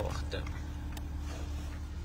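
A finger taps a touchscreen.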